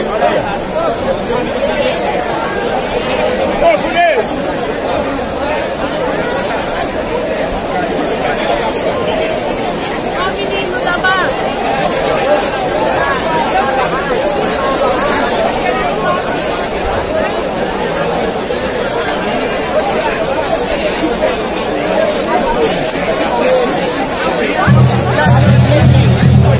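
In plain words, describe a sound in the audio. A large crowd of men and women chatters and shouts close by outdoors.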